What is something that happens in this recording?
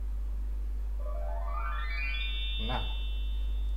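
A small speaker plays a short rising chime of tones.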